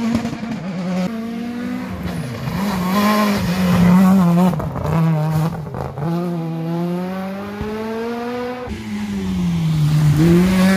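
A second rally car engine roars and revs loudly while speeding by.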